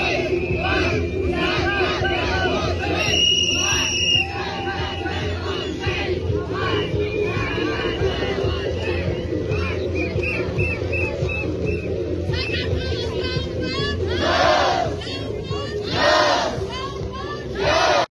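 A large crowd sings together outdoors.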